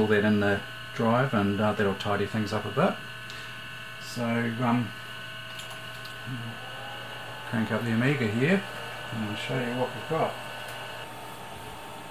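A computer drive hums steadily.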